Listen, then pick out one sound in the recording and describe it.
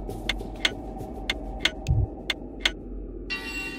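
Short clicking game sound effects play in quick succession.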